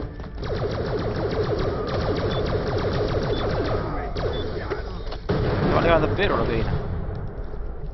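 A gun fires rapid shots in quick bursts.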